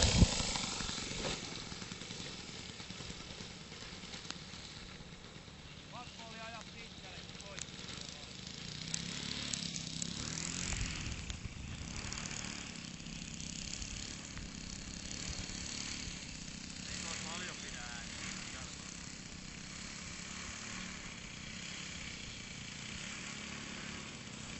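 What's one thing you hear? A small model plane engine buzzes, revs up and fades into the distance.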